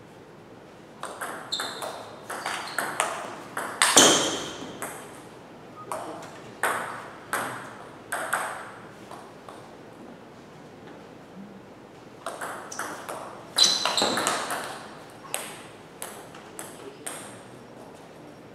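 A table tennis ball clicks back and forth between paddles and the table in a quick rally.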